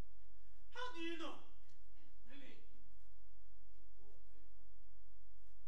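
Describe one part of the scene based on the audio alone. A young man speaks loudly with feeling in a large hall.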